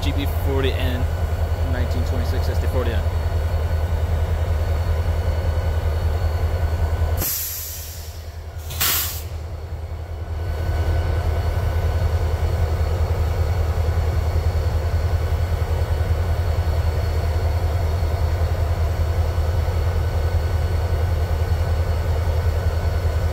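A diesel locomotive engine idles with a steady, deep rumble close by.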